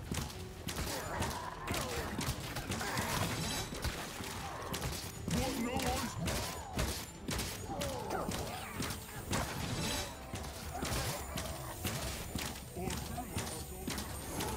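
A sword slashes and strikes creatures in rapid blows.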